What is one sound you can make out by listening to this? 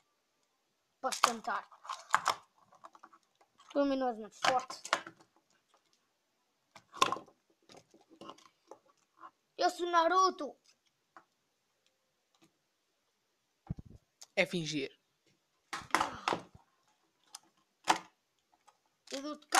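Plastic toy figures click and clatter as hands handle them.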